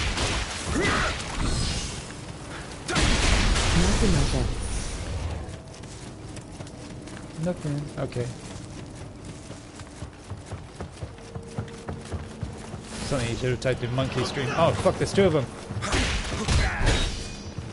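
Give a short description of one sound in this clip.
Swords clash and slash with heavy impacts.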